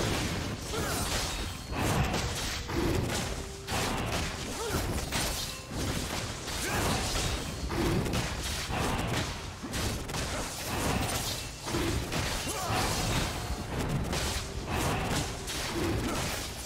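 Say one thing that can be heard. Fantasy battle sound effects clash and crackle as a dragon is attacked.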